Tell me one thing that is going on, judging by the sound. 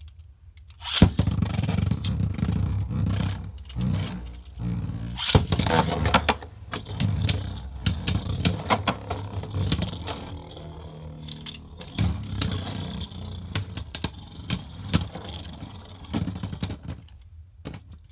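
Spinning tops clash and clack against each other and the arena wall.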